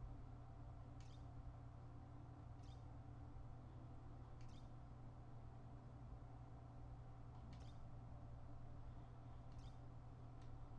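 Soft menu clicks tick at even intervals.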